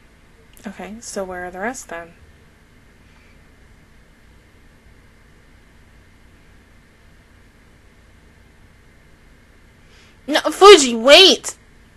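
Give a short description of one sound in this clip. A young woman speaks close into a microphone in short bursts.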